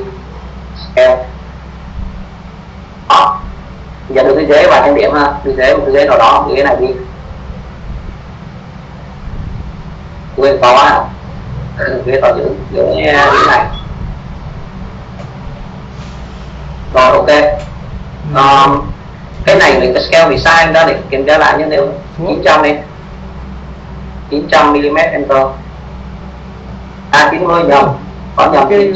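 A young man speaks calmly through an online call, with pauses.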